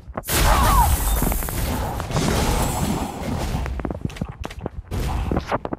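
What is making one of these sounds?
Game spell effects whoosh and blast in rapid bursts.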